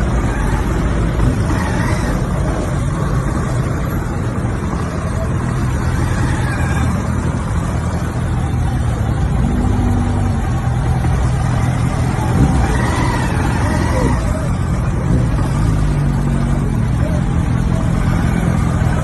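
Heavy traffic rumbles and hums all around outdoors.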